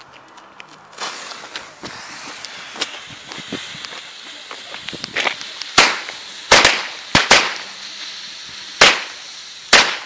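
A firework fuse fizzes and hisses.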